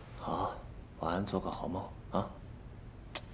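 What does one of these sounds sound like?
A woman speaks gently nearby.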